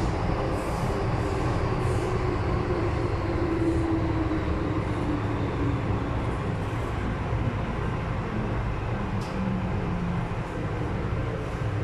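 A train slows down as it enters a station.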